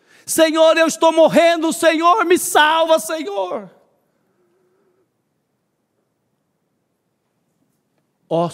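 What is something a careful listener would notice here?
A middle-aged man speaks with animation through a microphone, heard over loudspeakers.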